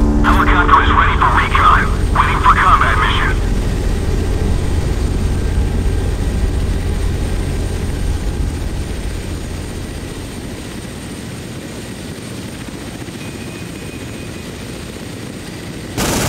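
A helicopter's rotor thuds and whirs steadily.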